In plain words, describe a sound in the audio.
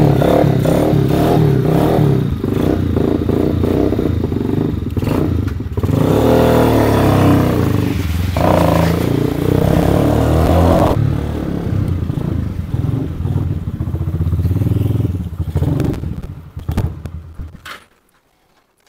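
A motorcycle engine rumbles close by.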